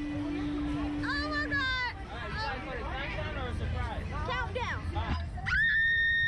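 Two young women laugh and talk excitedly close by.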